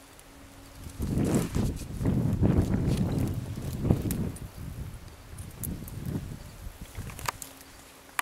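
Dry brush scrapes and crackles as someone pushes through it.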